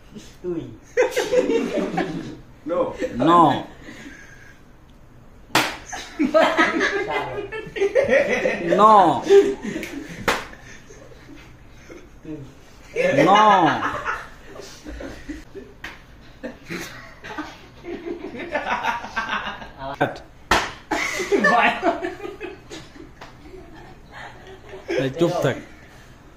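Young men laugh loudly close by.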